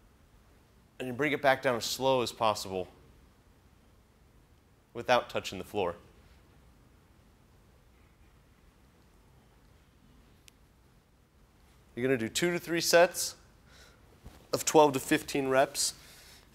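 A young man speaks calmly and clearly, close to a microphone, in short bursts with pauses.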